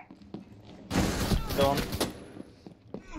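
A pistol fires several rapid shots.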